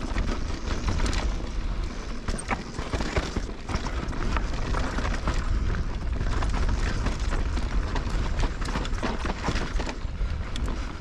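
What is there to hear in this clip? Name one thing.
Wind rushes past with a steady low rumble.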